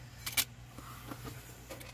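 A rotary cutter clicks and slides through fabric on a cutting mat.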